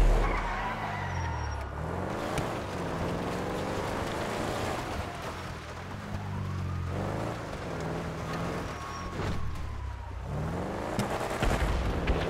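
A car engine revs up and down repeatedly as the car drives.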